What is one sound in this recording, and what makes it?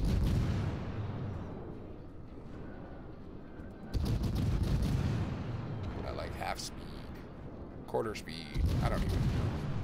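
Heavy naval guns fire with deep booming blasts.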